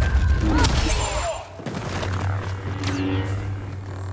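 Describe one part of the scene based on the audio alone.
Blaster shots zap and crackle.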